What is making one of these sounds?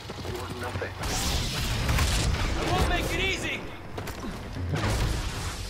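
A lightsaber hums and crackles close by.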